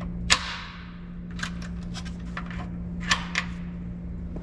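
Keys click and jingle in a lock.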